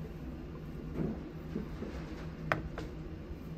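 A porcelain teacup clinks as it is set down on a tray.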